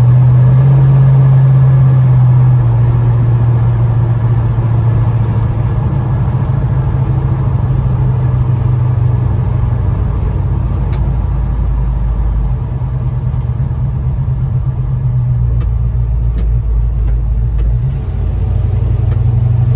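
A car engine rumbles low and steady from inside the cab.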